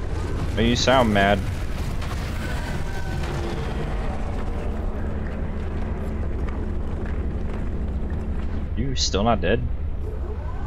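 A huge sea creature lets out loud, warbling roars.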